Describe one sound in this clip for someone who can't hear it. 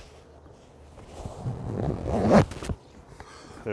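Canvas fabric rustles as it is pulled and smoothed.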